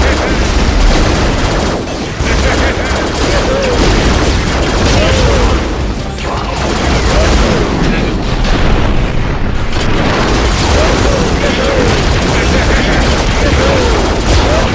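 Loud game explosions boom and crackle.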